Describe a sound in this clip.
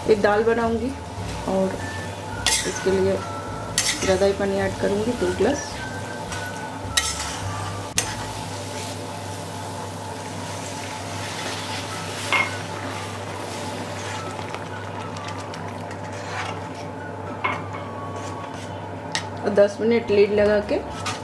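A thick sauce bubbles and sizzles gently in a pan.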